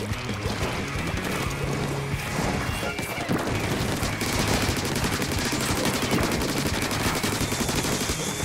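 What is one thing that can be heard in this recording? Ink guns spray and splatter in rapid bursts.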